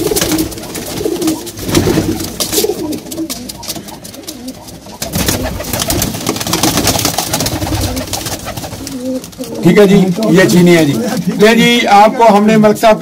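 Pigeons flap their wings in quick bursts.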